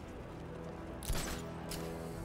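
Heavy boots land with a thud.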